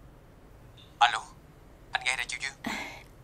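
A young woman talks on a phone, close by.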